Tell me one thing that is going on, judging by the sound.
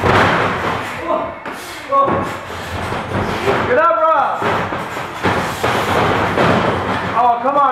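Young men shout and yell nearby in an echoing room.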